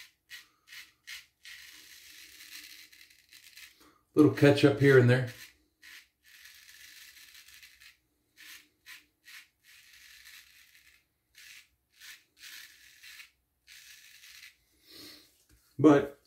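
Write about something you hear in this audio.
A razor scrapes over stubble in short strokes.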